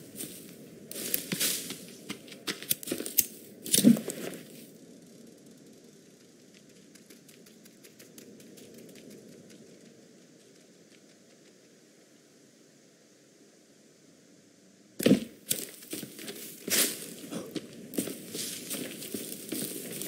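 Footsteps crunch through grass and brush.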